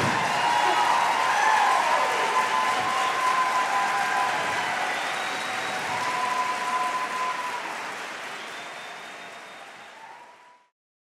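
An audience claps and cheers in a large hall, slowly fading away.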